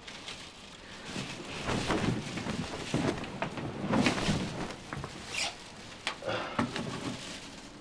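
A blanket rustles as a woman moves under it.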